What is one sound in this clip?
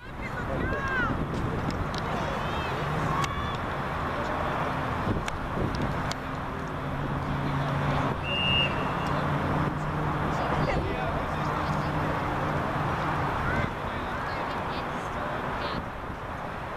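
Young girls call out to each other across an open field.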